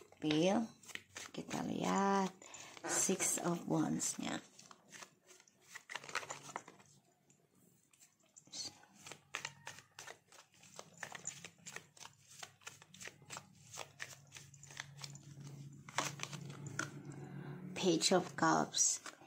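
Playing cards shuffle and rustle close by.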